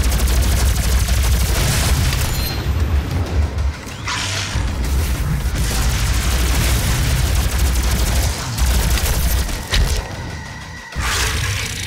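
A large monster roars and growls nearby.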